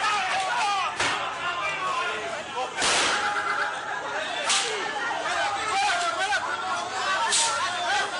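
Gunshots crack sharply several times.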